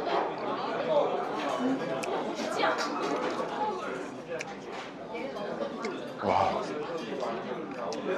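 Chopsticks clink against a metal pot.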